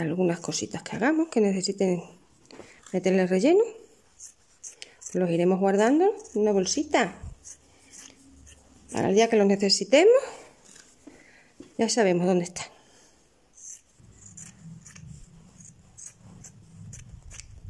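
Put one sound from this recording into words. Scissors snip through quilted fabric.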